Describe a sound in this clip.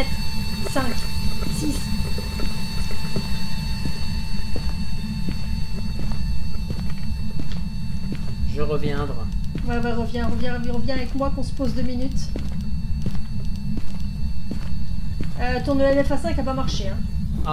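Footsteps walk steadily across a hard floor.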